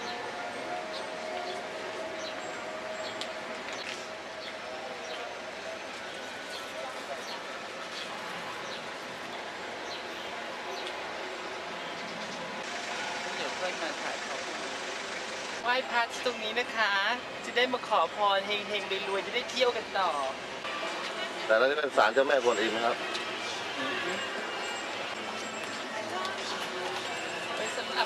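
A crowd murmurs outdoors in a busy street.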